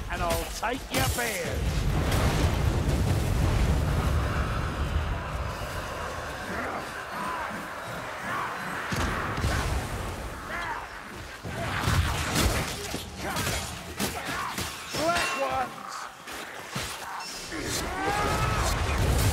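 Blades slash and clang against armoured foes.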